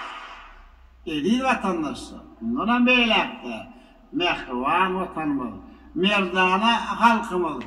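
A middle-aged man speaks formally into a microphone, heard through loudspeakers in a large hall.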